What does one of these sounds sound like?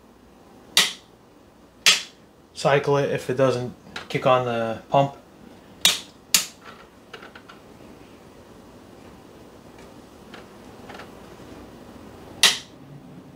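A small device clicks sharply as it is handled, several times.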